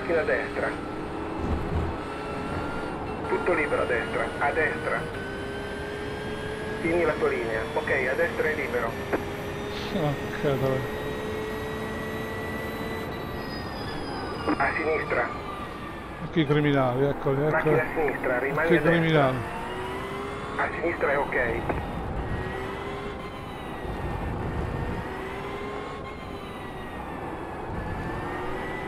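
A race car engine drones steadily and shifts in pitch.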